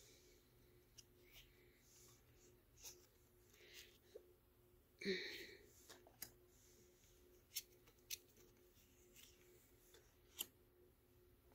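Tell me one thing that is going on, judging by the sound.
Stiff cards tap and slide against each other.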